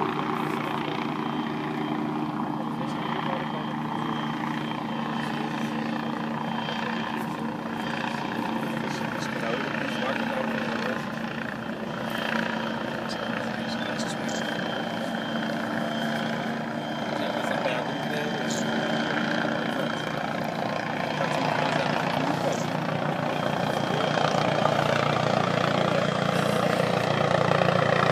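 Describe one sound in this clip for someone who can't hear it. A small aircraft engine drones steadily overhead.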